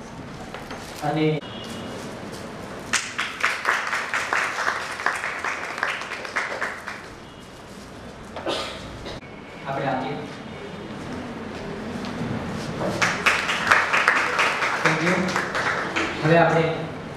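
A man speaks into a microphone through a loudspeaker.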